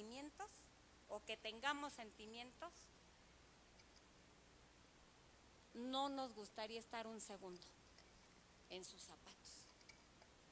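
A middle-aged woman speaks forcefully through a microphone in a large echoing hall.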